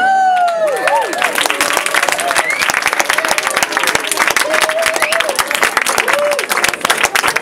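Audience members whoop and cheer.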